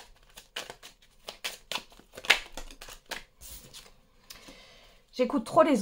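A card is laid down on a wooden table with a soft tap.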